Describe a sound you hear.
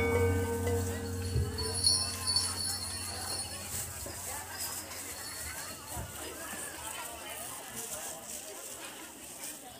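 A crowd of young people chatter outdoors.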